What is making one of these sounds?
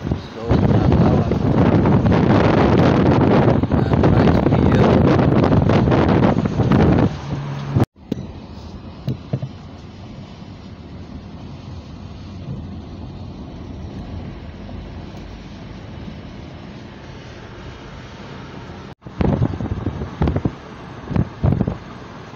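Wind rushes loudly past a moving car's open window.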